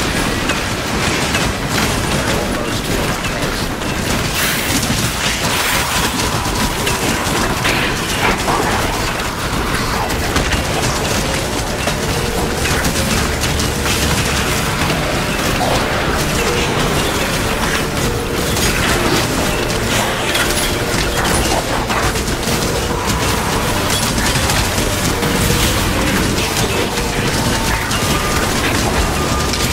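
Magic spells crackle and burst in quick bursts.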